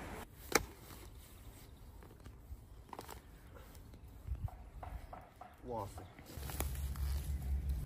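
A hoe thuds into soft soil.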